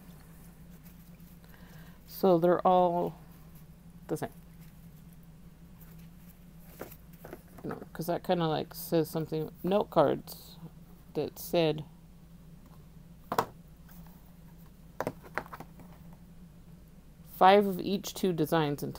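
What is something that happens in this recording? Stiff paper cards rustle and flap as they are sorted by hand.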